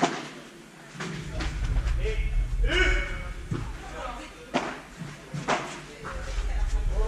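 Paddles hit a ball with sharp pops that echo in a large hall.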